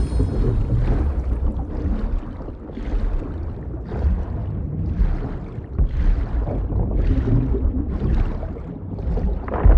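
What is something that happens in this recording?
Water swishes and surges with slow, rhythmic swimming strokes underwater.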